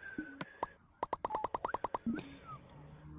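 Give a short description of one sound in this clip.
Quick clicks tick in a rapid run.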